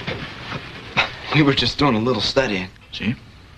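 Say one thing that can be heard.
A teenage boy speaks, close by.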